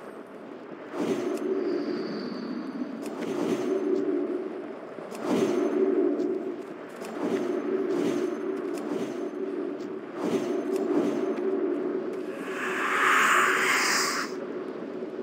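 Magic spells chime and shimmer in repeated bursts.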